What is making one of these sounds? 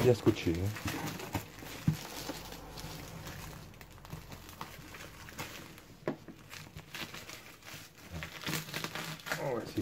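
A cardboard box rustles and thumps as hands handle it.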